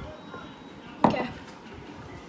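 A mug knocks down on a hard surface.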